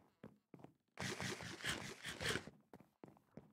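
Food is munched and chewed with a crunch.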